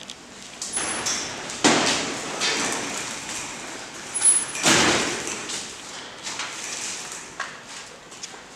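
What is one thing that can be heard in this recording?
A heavy cabinet on casters rolls and rattles across a hard floor.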